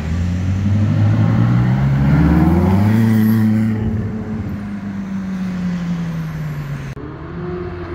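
A sports car engine roars loudly as the car accelerates past.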